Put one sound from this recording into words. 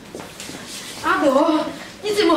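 A middle-aged woman speaks loudly nearby.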